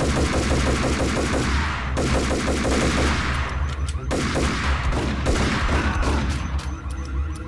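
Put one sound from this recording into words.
Pistol shots fire in quick bursts, echoing through a large hall.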